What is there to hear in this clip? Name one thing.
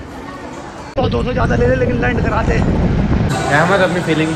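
A man shouts and sings loudly outdoors.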